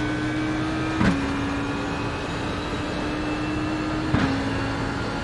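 Gear changes crack sharply as a racing car shifts up.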